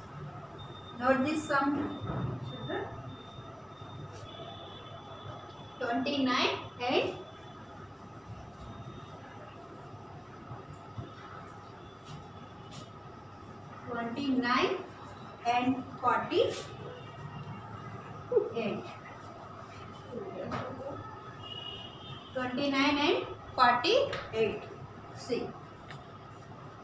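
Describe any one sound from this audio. A young woman speaks clearly and calmly.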